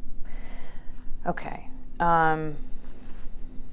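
A woman speaks quietly and briefly.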